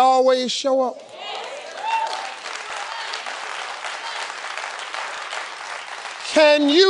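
A studio audience cheers and applauds.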